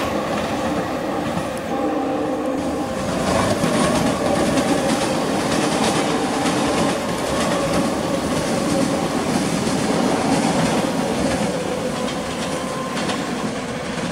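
An electric commuter train hums and rumbles as it runs along the track.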